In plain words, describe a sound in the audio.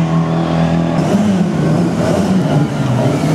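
A second rally car engine revs roughly as the car approaches.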